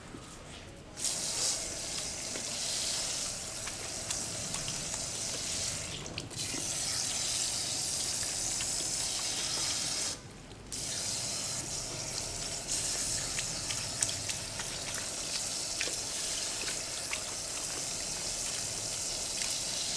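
Water sprays from a shower head onto hair with a steady hiss.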